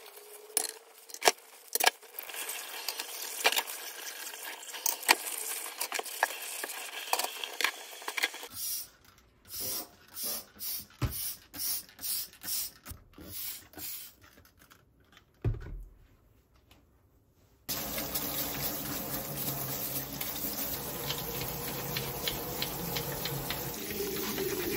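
Tap water runs and splashes into a metal sink.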